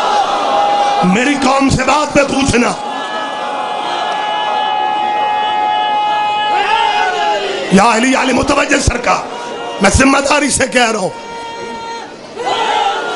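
A man speaks forcefully into a microphone, heard through loudspeakers with echo.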